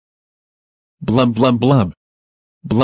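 A woman exclaims in a flat, computer-like voice.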